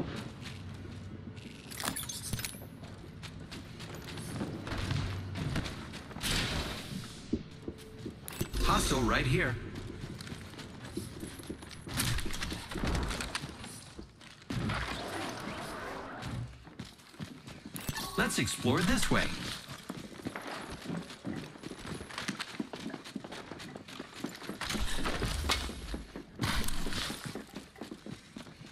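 Footsteps clatter quickly across metal floors.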